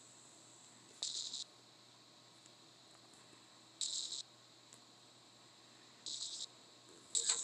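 Short electronic blips sound one after another.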